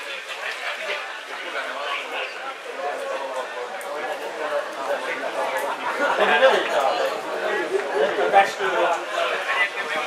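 A small crowd of men chatters and calls out outdoors.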